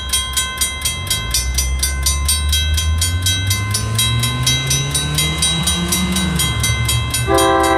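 A train engine rumbles as it approaches, rising in pitch.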